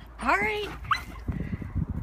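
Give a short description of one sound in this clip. A dog yelps sharply.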